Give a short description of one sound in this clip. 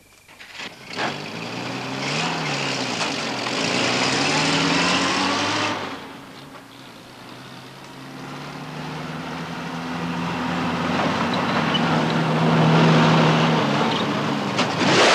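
A truck engine rumbles and revs close by.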